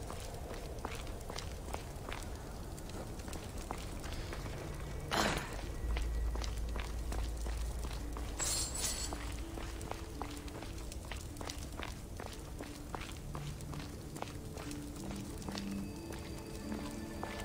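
Footsteps tread on stone in an echoing passage.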